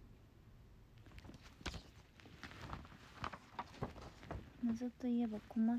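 Paper rustles as a sheet is handled.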